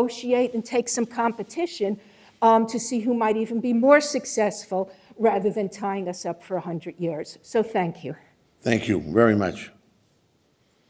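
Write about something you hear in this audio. A middle-aged woman speaks steadily into a microphone in a large room.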